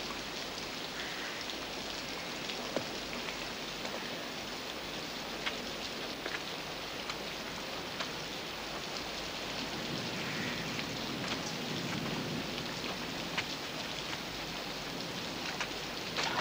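Footsteps tread softly on wet grass.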